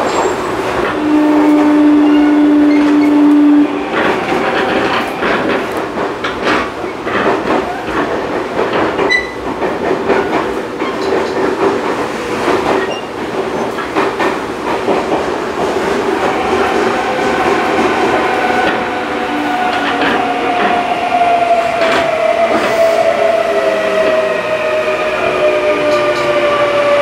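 An electric commuter train rumbles along its rails, heard from inside a car.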